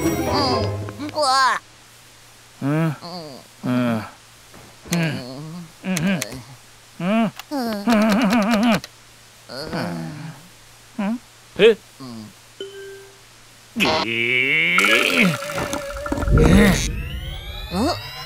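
A man speaks loudly and with animation, in an exaggerated cartoon voice.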